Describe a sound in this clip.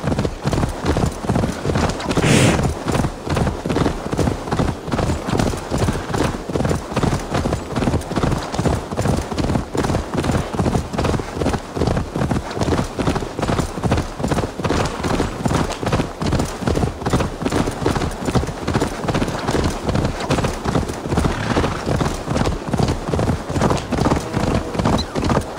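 A horse gallops on a dirt path, hooves thudding.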